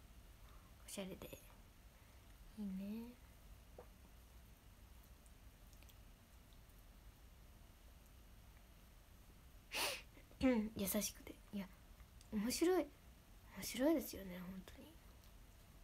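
A young woman speaks softly and hesitantly, close to a microphone.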